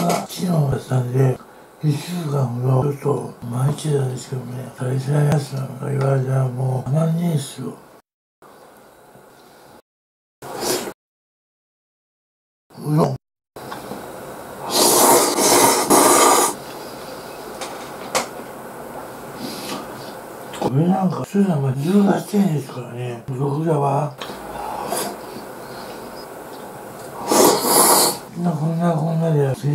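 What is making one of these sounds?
A man speaks calmly and close to the microphone.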